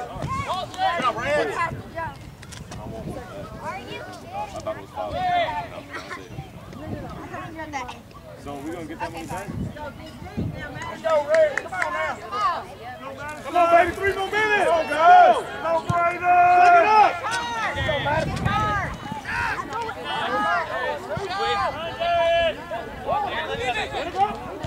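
Young male players shout to each other across an open field outdoors.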